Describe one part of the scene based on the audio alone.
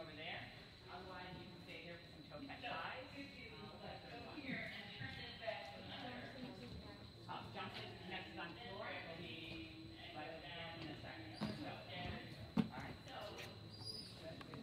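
Young women chatter nearby in a large echoing hall.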